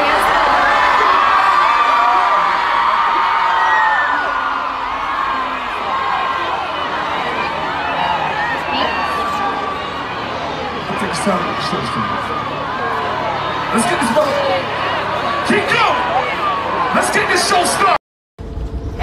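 A large crowd sings and cheers loudly outdoors.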